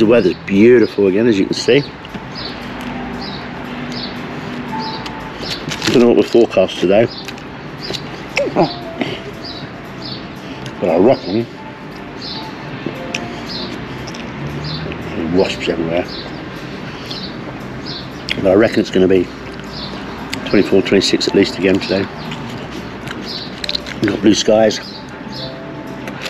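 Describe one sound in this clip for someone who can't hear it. An older man talks with animation close to a microphone.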